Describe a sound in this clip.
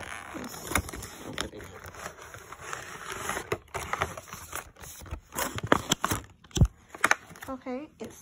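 Plastic packaging rustles and crinkles close by.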